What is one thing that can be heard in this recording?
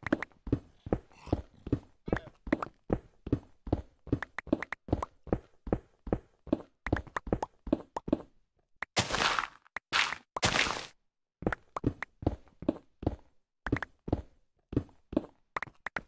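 Stone blocks crunch and thud in a quick, steady rhythm as they are dug away.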